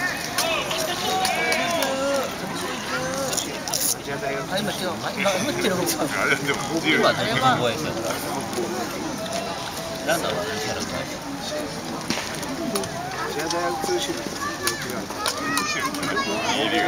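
A crowd of spectators chatters outdoors.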